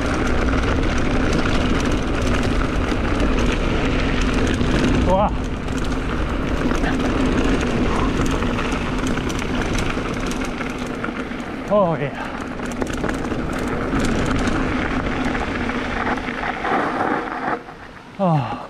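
Bicycle tyres rumble over a dirt trail.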